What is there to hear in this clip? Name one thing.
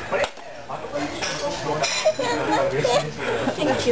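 A young woman laughs and groans close by.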